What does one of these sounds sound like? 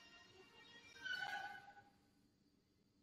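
Large sliding doors meet with a thud.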